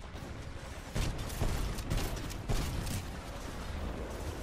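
A heavy gun fires rapid loud bursts.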